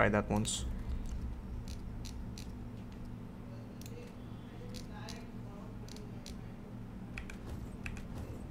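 Soft clicks tick now and then.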